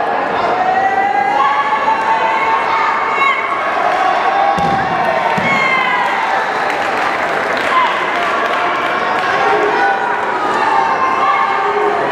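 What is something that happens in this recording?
A large crowd shouts and cheers in an echoing hall.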